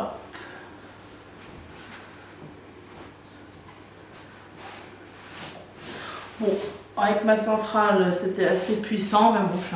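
Hands rustle and smooth fabric.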